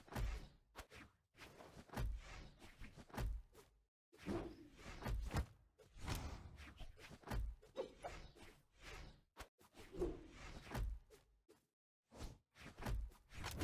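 Punchy video game hit sounds thump and whoosh in quick bursts.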